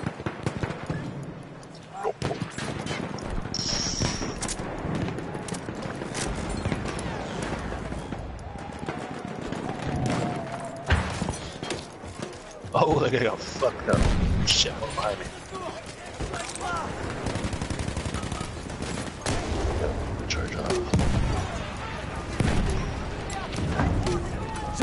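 Explosions boom in the distance.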